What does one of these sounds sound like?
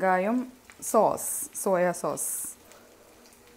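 Sauce is poured into a hot pan and hisses briefly.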